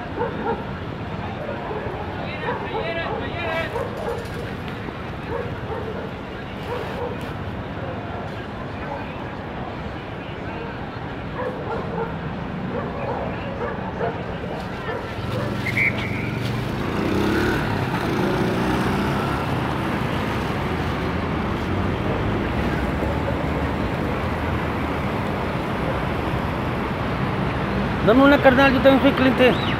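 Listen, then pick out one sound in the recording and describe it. Traffic hums steadily along a street outdoors.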